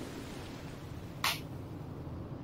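A body thuds down onto sand.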